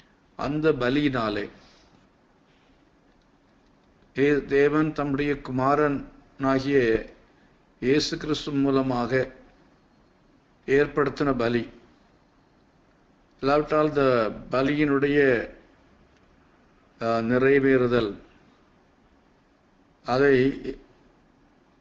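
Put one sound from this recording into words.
An elderly man speaks calmly in short phrases with pauses, close to a microphone.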